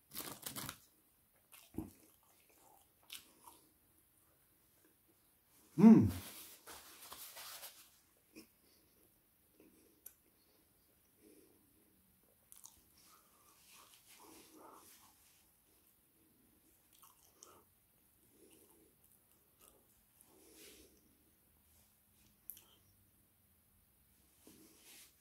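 A man crunches food up close.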